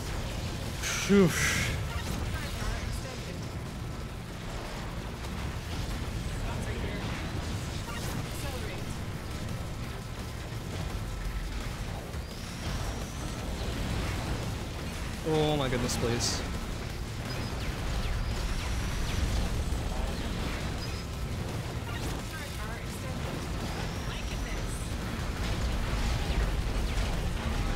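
Video game blasts and explosions crackle rapidly throughout.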